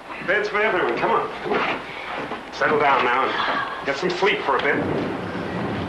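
A man speaks urgently nearby.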